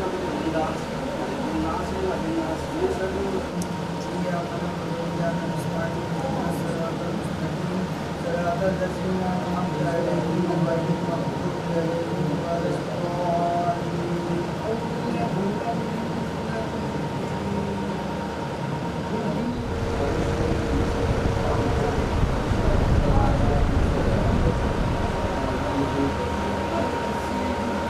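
A group of men murmur prayers together close by.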